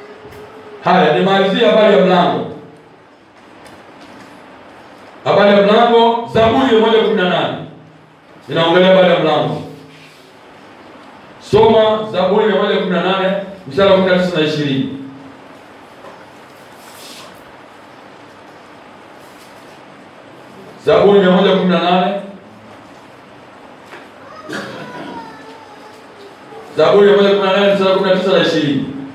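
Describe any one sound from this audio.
A man speaks calmly in short bursts with pauses, close to a microphone.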